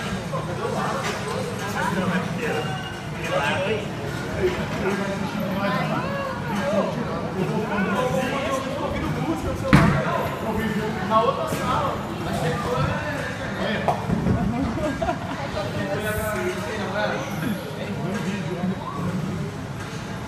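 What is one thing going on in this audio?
Voices chatter throughout, in a large echoing room.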